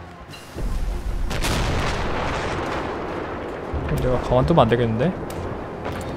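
A huge explosion booms and rumbles away.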